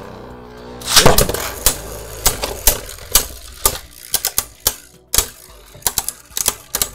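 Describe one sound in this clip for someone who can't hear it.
Spinning tops clash together with sharp clicks.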